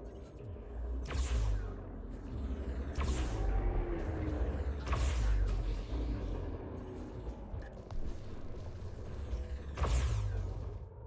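Laser cannons fire in sharp, sudden bursts.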